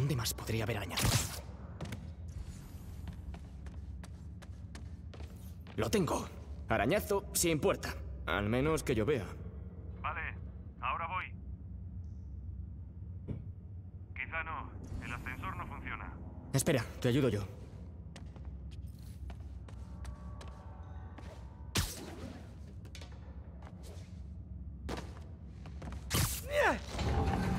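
An adult man talks with animation into a close microphone.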